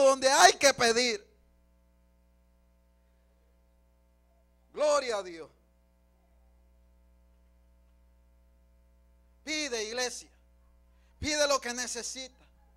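A man speaks with feeling into a microphone, in short bursts with pauses.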